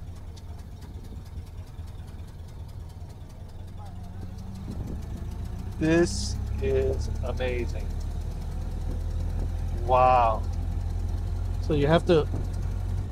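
An old car engine rumbles low and steady.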